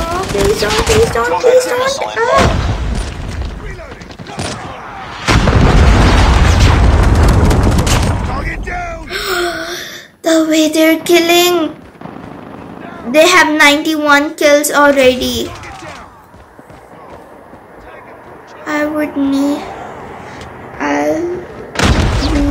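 A young girl talks with animation into a nearby microphone.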